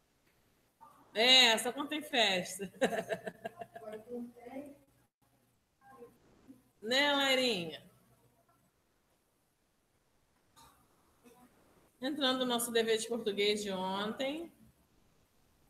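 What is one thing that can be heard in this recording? A woman speaks calmly and clearly through an online call.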